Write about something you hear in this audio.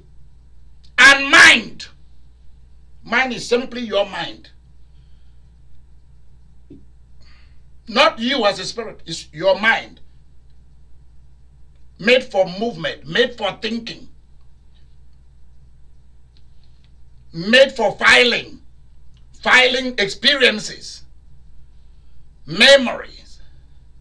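A middle-aged man speaks with animation in short bursts with pauses, close by.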